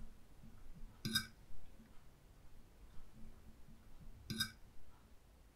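A phone chimes with a short notification tone.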